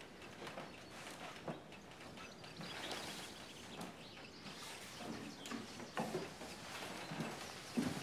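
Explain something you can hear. Clothes rustle and hangers clatter in a wardrobe.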